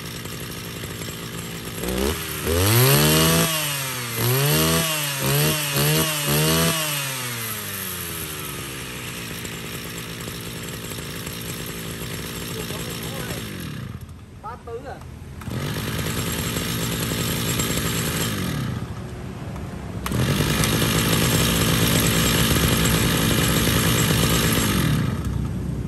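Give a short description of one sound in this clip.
A small petrol engine runs at a loud, buzzing idle.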